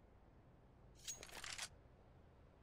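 A rifle's metal parts click and rattle as it is handled.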